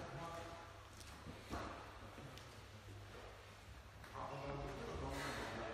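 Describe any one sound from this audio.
A man talks casually nearby in a large echoing hall.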